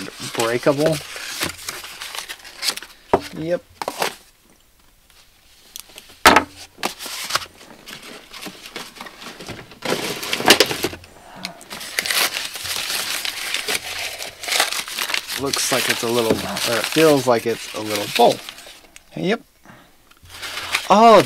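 Paper crinkles and rustles as hands unwrap it.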